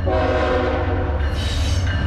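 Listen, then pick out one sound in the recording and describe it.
A train engine rumbles low and steady.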